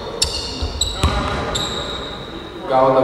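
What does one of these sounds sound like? Basketball shoes squeak sharply on a wooden court in a large echoing hall.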